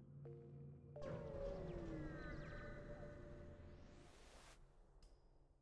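A deep whooshing rush swells and then sweeps upward and fades.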